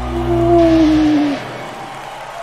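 Live rock music plays loudly through speakers.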